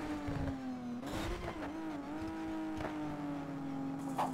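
Tyres screech as a car slides through a turn.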